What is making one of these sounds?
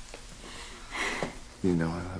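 A man speaks softly.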